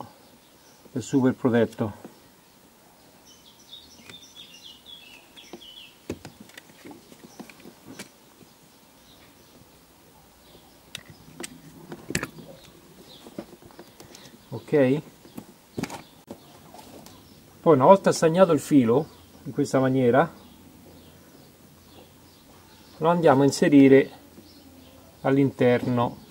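A man speaks close by in short, calm bursts.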